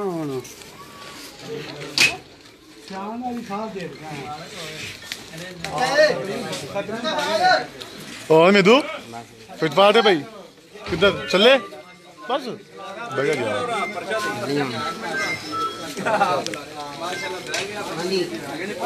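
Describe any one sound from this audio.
Several men talk loudly and with animation close by, outdoors.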